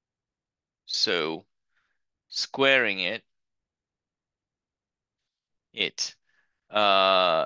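A man explains calmly, close to a microphone, with pauses.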